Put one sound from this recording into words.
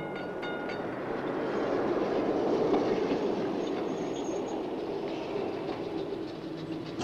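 A tram rolls past close by, its noise swelling and fading.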